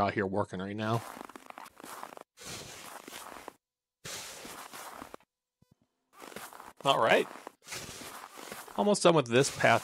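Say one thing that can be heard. A shovel scrapes through snow on hard ground.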